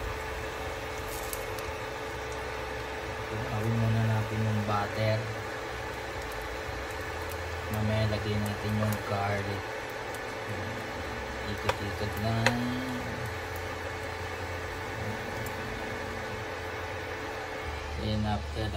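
Butter sizzles softly in a hot pan.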